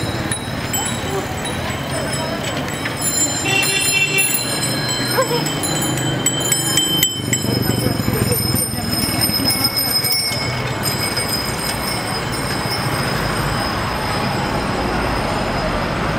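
People chatter outdoors in the street.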